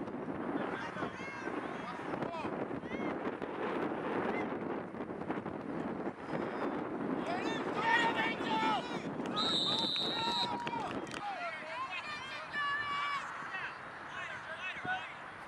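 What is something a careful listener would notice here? A crowd of children and adults shouts and cheers at a distance outdoors.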